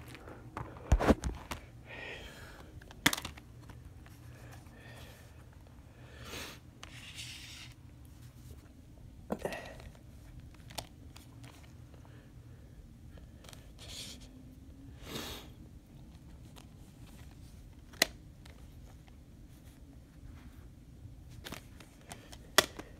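Fingers handle discs in a plastic case, with light clicks and taps.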